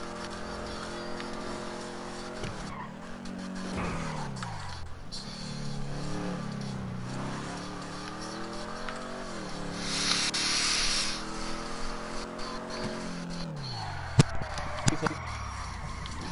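A car engine revs up and down as it shifts through gears.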